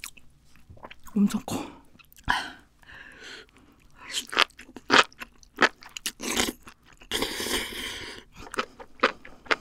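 A young woman slurps food loudly close to a microphone.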